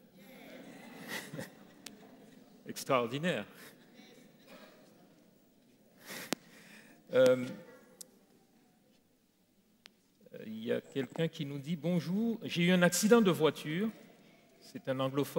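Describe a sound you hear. An elderly man speaks calmly through a microphone in a reverberant hall.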